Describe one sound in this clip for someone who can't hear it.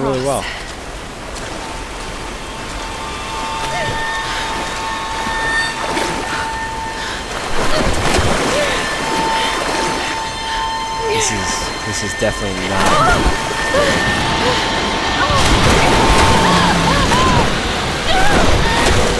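Rushing water roars loudly.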